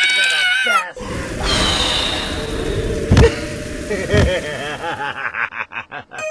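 Gas hisses loudly in a sudden burst.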